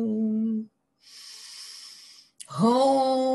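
A woman draws a deep breath.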